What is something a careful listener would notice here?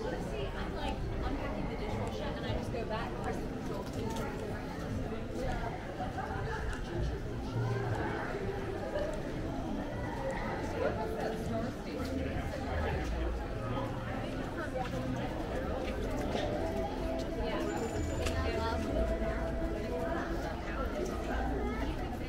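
Footsteps tap on the paving stones.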